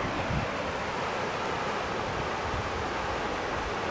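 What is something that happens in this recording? Small waves break on a beach.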